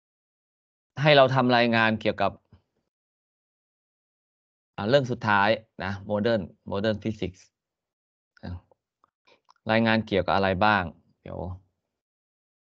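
An older man speaks calmly into a microphone over an online call, in short phrases with pauses.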